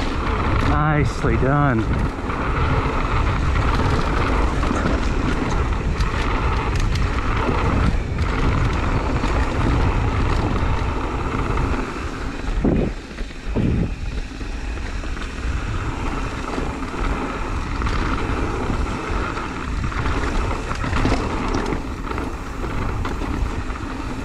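A bike chain and frame rattle over bumps.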